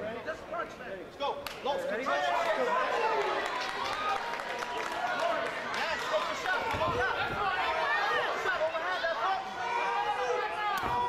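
A large crowd shouts and cheers loudly.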